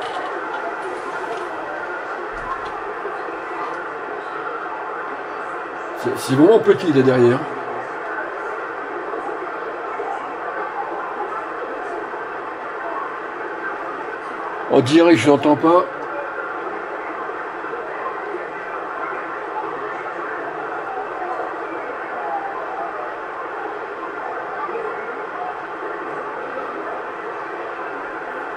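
Static hisses steadily from a radio receiver.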